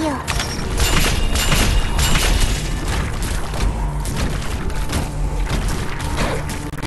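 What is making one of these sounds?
Rapid game sound effects of strikes and blasts clash over each other.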